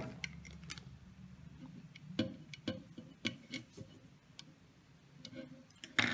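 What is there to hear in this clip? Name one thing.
A small screwdriver turns a screw on a metal bracket.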